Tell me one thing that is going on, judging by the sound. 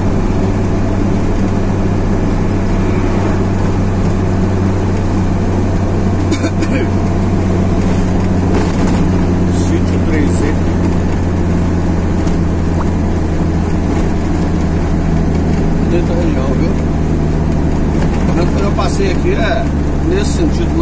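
Tyres roll and hum on asphalt.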